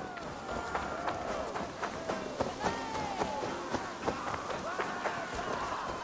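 Footsteps crunch on a dirt path at a steady walking pace.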